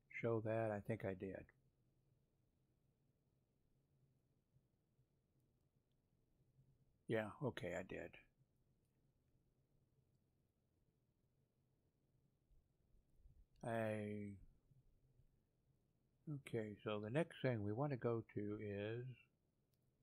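A middle-aged man talks calmly into a headset microphone, in short bursts with pauses.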